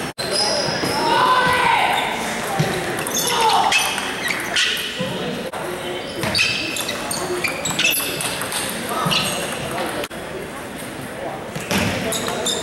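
A ping-pong ball clicks back and forth across a table in a large echoing hall.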